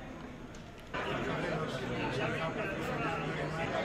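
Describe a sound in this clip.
Several men and women chatter together nearby.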